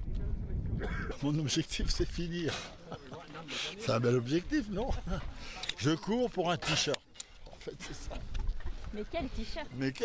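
A man talks with animation close by, outdoors.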